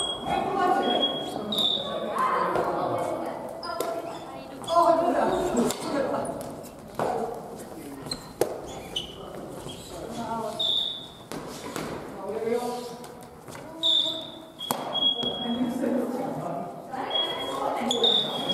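Young people talk and call out in an echoing hall.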